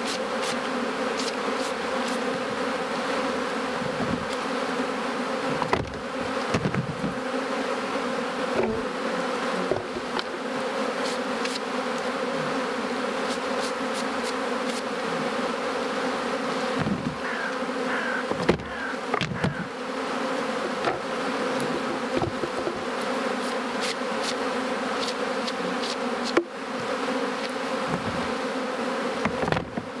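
Wooden hive frames knock and scrape now and then.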